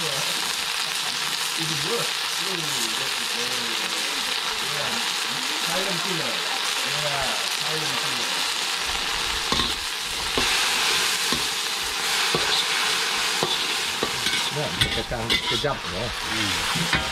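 Food sizzles steadily in a hot wok.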